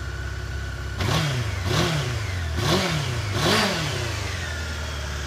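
A motorcycle engine revs sharply four times through the exhaust.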